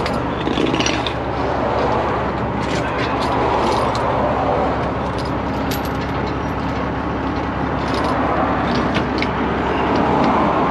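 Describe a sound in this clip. Metal parts clink and clatter close by.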